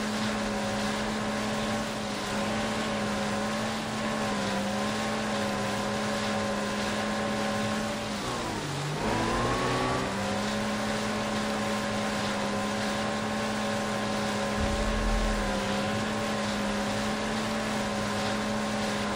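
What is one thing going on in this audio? Water splashes and rushes against a jet ski hull.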